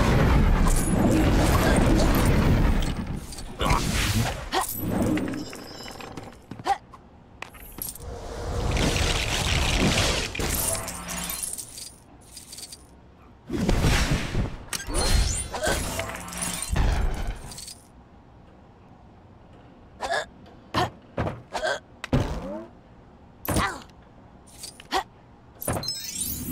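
A magic spell whooshes and shimmers repeatedly.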